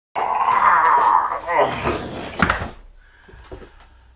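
A plastic filter housing thumps onto a table.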